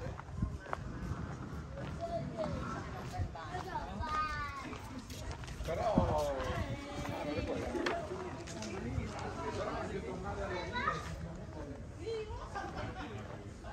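Adults chat nearby in low voices.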